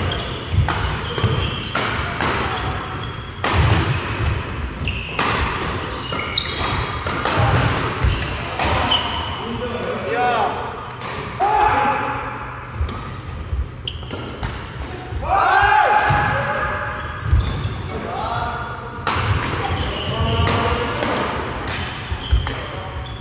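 Shuttlecocks are struck with sharp racket pops in a large echoing hall.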